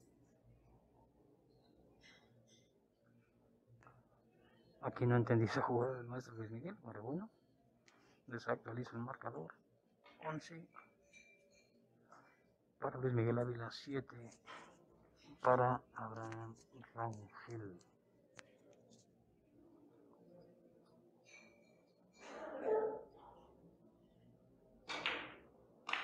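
Billiard balls click together on a table.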